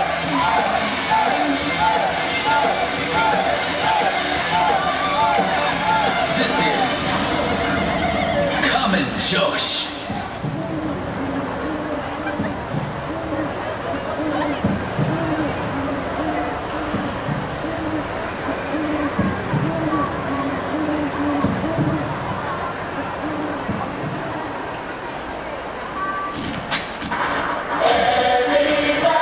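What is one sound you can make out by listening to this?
Loud pop music plays over outdoor loudspeakers.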